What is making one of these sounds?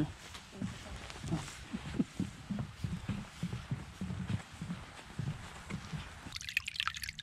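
Footsteps thud on a wooden footbridge.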